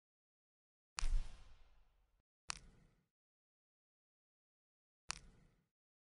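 Short soft clicks sound one at a time.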